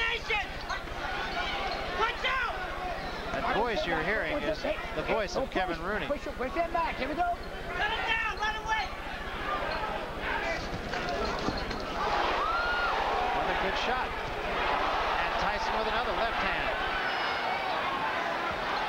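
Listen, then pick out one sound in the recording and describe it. A large crowd cheers and murmurs in a big echoing hall.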